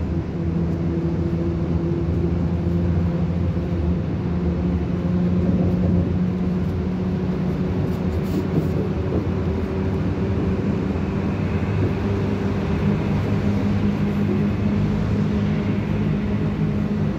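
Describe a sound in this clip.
A vehicle's engine hums steadily from inside.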